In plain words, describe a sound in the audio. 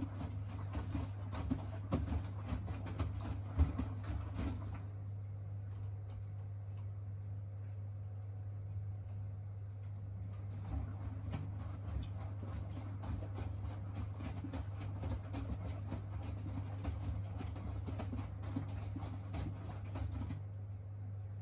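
Wet laundry sloshes and thumps as a washing machine drum turns.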